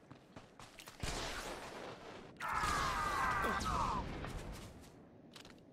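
Blaster shots and combat noises burst out loudly.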